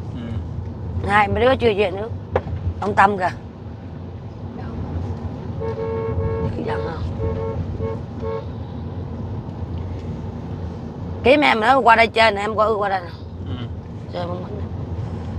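A car engine rumbles low and steadily inside a car.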